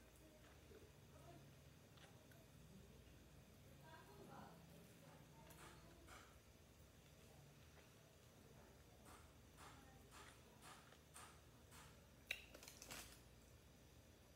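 A woman chews and smacks her lips loudly up close.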